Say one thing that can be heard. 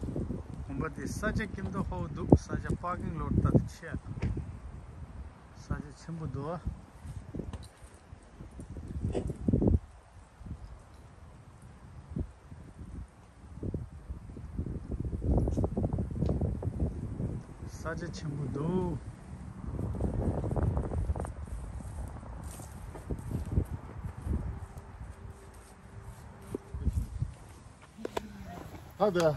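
A man speaks calmly, close to the microphone, outdoors.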